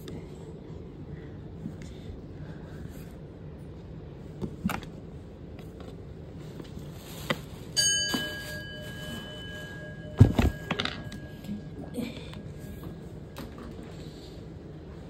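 Fabric rustles and brushes against the microphone.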